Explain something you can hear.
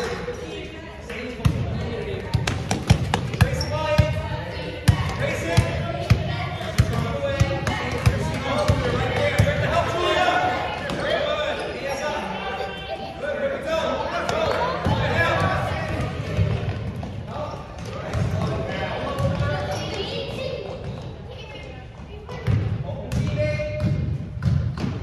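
Young girls shout and call out across an echoing hall.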